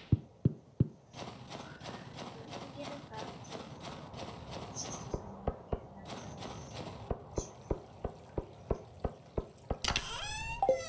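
Footsteps crunch steadily on snow and stone.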